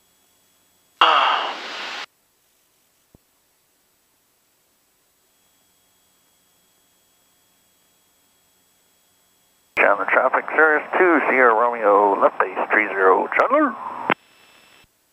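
A young man speaks calmly through a headset intercom.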